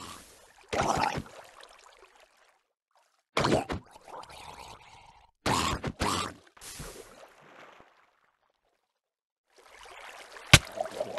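Blows strike a creature with short, sharp thuds.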